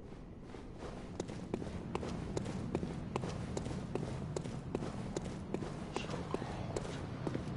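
Footsteps tap on stone paving.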